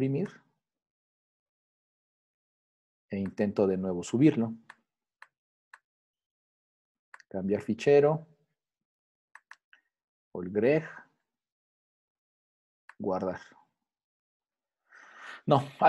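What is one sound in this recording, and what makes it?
A man speaks calmly in short phrases through an online call.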